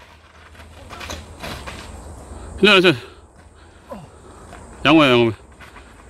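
Bicycle tyres roll and bump over rocky dirt.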